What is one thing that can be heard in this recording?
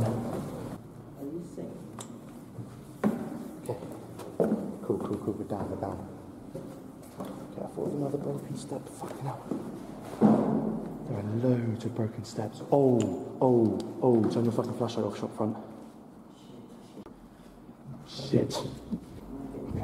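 Footsteps thud on stairs and a hard floor.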